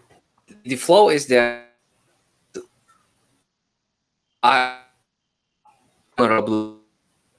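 A man speaks in short bursts over an online call.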